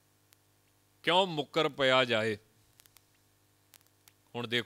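A man speaks with animation into a microphone, in short bursts.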